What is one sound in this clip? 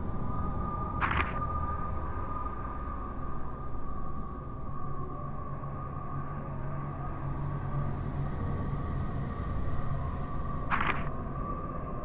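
A paper page turns with a short swish.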